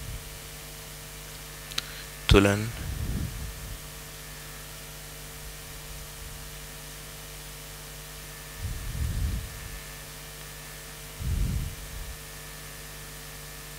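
A projector fan hums steadily.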